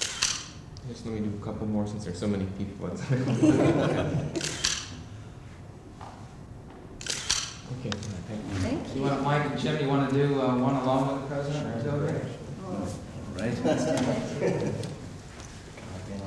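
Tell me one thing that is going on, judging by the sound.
A man speaks warmly nearby, with pauses.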